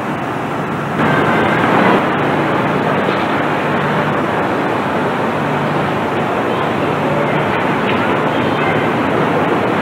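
An electric bus hums as it drives past on a street.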